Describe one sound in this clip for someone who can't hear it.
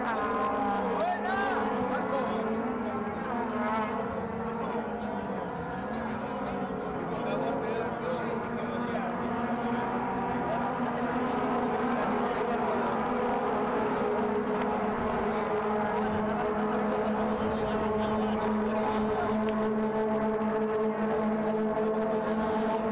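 A crowd of spectators chatters and calls out close by, outdoors.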